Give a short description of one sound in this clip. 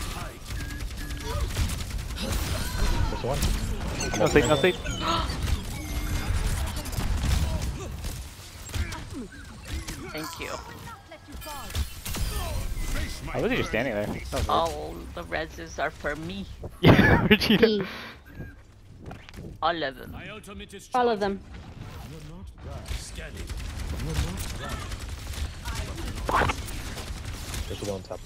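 Arrows whoosh and thud in a game's battle.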